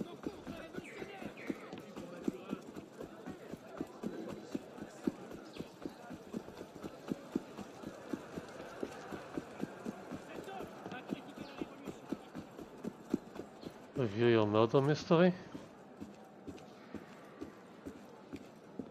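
Quick footsteps run over cobblestones.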